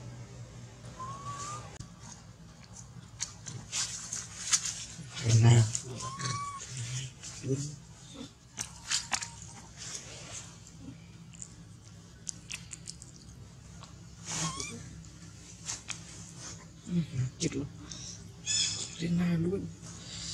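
A young monkey gives high squeaky calls close by.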